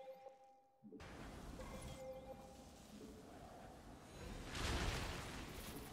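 A video game energy beam blasts down with a deep rumbling roar.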